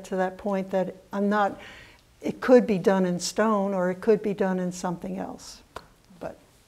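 An older woman speaks with animation close by.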